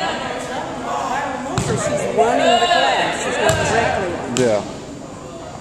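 Adults shout and call out to each other in a large echoing gym.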